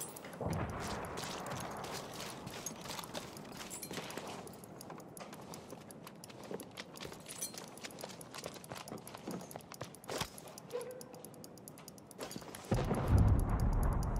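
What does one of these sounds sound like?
Footsteps tread quickly over dirt and wooden boards.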